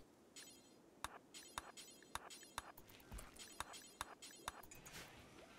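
Short interface clicks sound again and again.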